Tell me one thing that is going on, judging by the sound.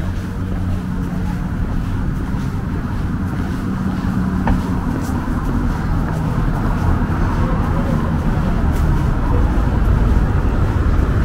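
Footsteps tap on a paved path outdoors.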